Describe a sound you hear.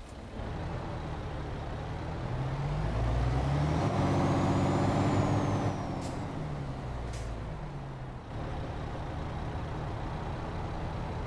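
A truck engine drones steadily, rising and falling in pitch as it speeds up and shifts gears.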